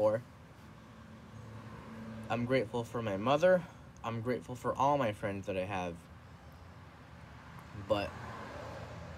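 A young man talks casually close up.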